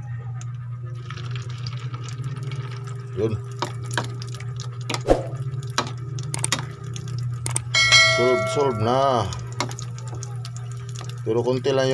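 Batter sizzles as it is dropped into hot oil in a pan.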